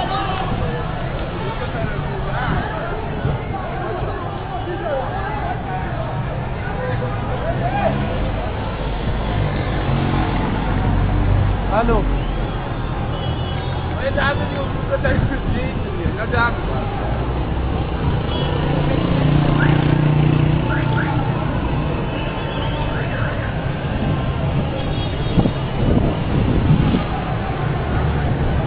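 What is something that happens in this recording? Men shout excitedly outdoors in a street.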